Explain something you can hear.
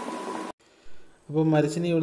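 A metal lid clinks onto a pot.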